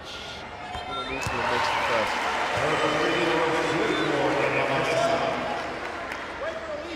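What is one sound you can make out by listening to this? A large indoor crowd cheers and roars in an echoing arena.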